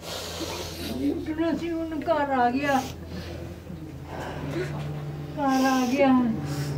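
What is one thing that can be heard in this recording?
A woman wails and sobs close by.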